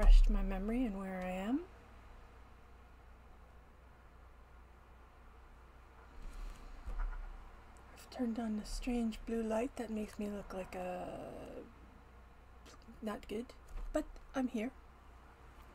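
A middle-aged woman speaks calmly, close to a webcam microphone.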